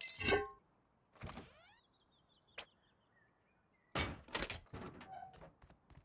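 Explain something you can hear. A wooden door swings open with a knock.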